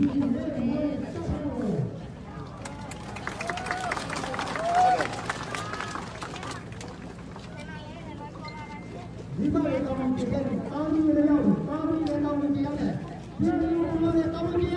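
A crowd of men and women chants loudly in unison outdoors.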